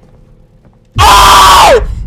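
A young man screams loudly into a microphone.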